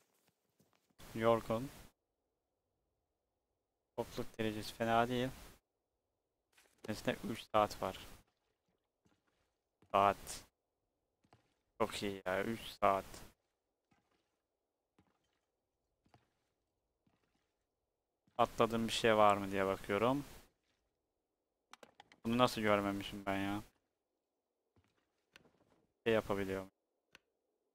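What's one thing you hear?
A young man talks into a close microphone in short bursts, with pauses between.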